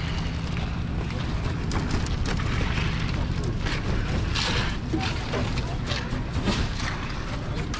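Rakes scrape and slap through wet concrete.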